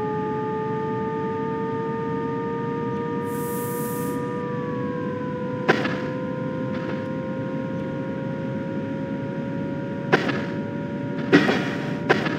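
A low rumble of a train rolling along the track runs throughout.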